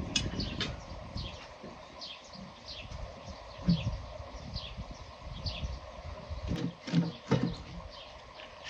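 Wooden logs knock and clatter together as they are stacked.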